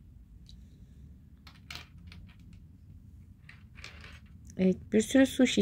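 Small plastic toy pieces clatter and click against each other in a hand.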